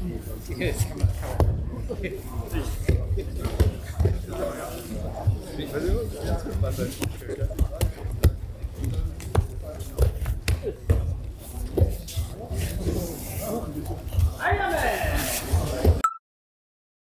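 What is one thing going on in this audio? Bodies thud repeatedly onto mats as people are thrown.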